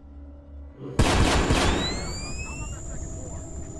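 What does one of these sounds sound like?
A grenade goes off with a loud bang.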